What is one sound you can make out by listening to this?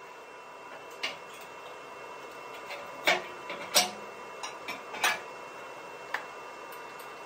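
A hammer knocks sharply on a steel beam.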